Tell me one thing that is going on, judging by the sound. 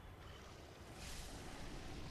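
A sword slashes into flesh.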